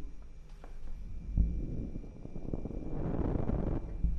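A young woman breathes sharply nearby.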